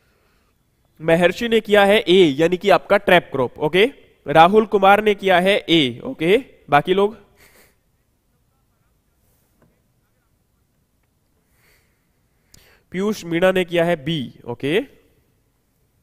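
A young man speaks calmly and clearly into a close microphone, in short bursts with pauses.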